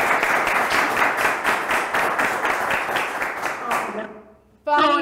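A young woman laughs heartily over an online call.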